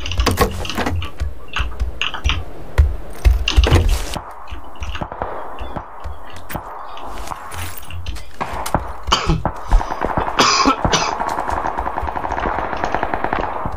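Footsteps thud on a wooden floor indoors.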